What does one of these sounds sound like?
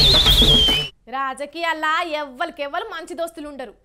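A woman presenter speaks with animation into a studio microphone.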